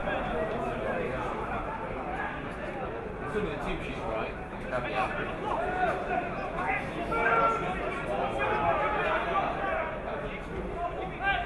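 Players shout to each other outdoors on an open field.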